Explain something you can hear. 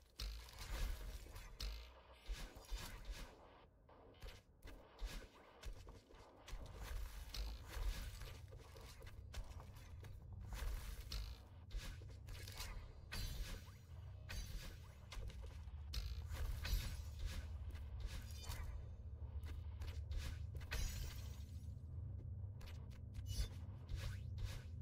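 Video game sound effects whoosh and chime in quick bursts.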